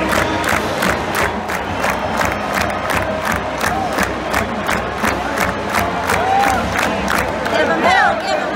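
A marching band plays loudly with a steady, pounding drum beat.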